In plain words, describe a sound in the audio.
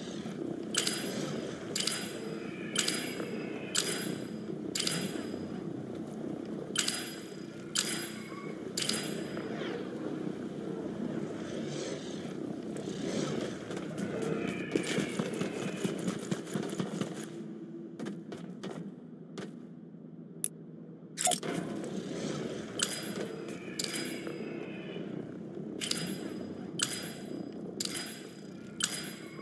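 Bright reward chimes ring out again and again in quick succession.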